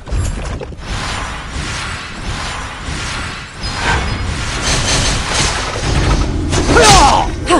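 Magic blasts zap and crackle in a battle.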